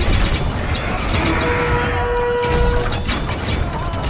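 A building crumbles and collapses with a rumbling crash.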